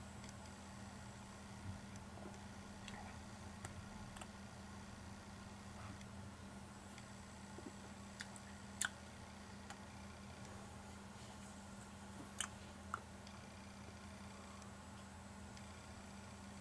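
A man sips a drink from a glass, close by.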